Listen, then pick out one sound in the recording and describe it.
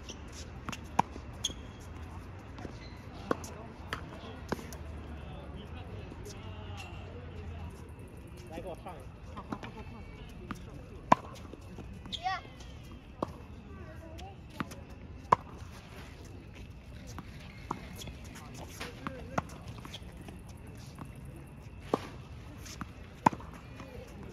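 Tennis balls pop off rackets in a rally, outdoors.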